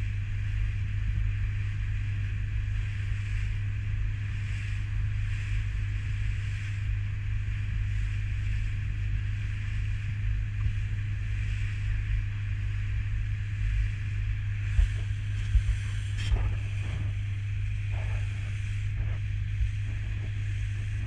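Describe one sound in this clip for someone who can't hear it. A boat's motor hums steadily.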